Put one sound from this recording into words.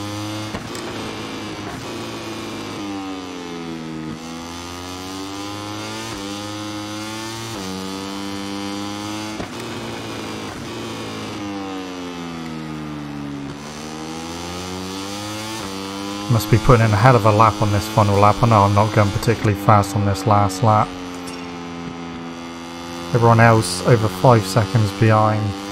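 A motorcycle engine whines at high revs, its pitch rising and falling as it shifts gears.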